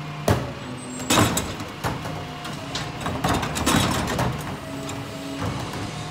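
A garbage truck's hydraulic lift whines and clunks.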